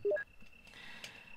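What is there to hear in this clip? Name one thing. An electronic menu chime beeps.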